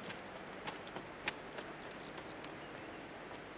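Footsteps run quickly along a gravel path outdoors.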